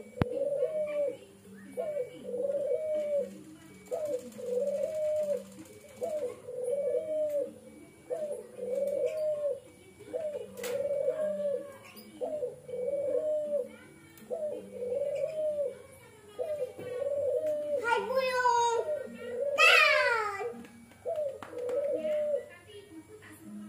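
A dove coos in a steady, repeating rhythm close by.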